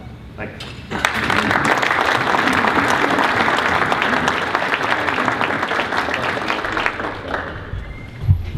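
A crowd applauds in an echoing room.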